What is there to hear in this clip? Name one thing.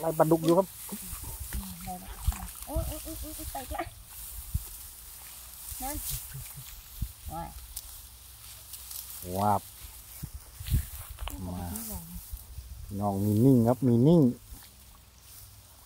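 Dry grass rustles and snaps as it is pulled and cut by hand.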